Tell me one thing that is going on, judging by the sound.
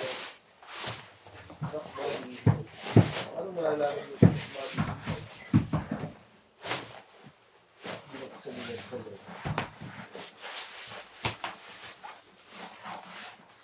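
Bubble wrap crinkles and rustles as it is handled.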